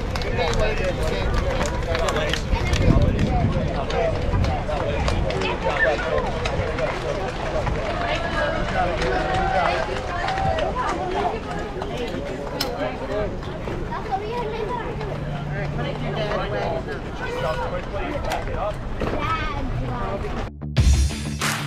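A crowd of young girls chatters and calls out outdoors.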